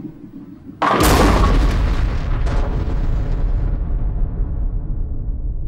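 Fire bursts with a loud whoosh and slowly fades.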